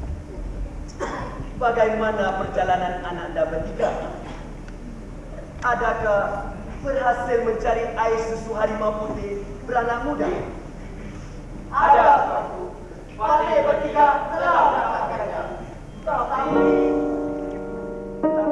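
A man sings through a microphone in a large echoing hall.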